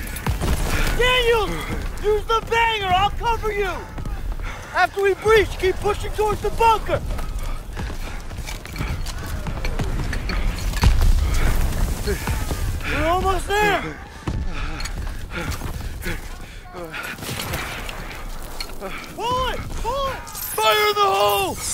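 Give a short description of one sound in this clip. A young man shouts urgently, close by.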